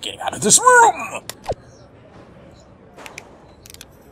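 A mouse button clicks once.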